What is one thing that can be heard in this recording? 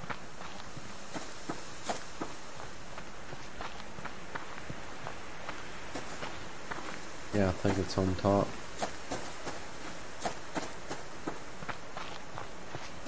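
Footsteps crunch steadily through grass and gravel.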